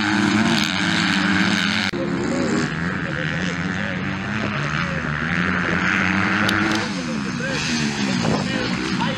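Motocross bikes race past, engines revving hard through the gears.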